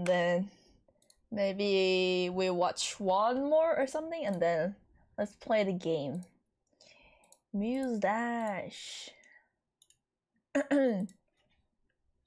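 A young woman talks playfully into a close microphone, with a sing-song voice.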